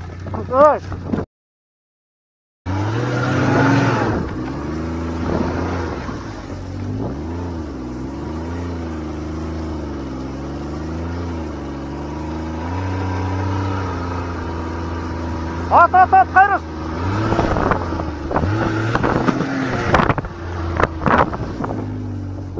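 A snowmobile engine hums and revs up and down close by.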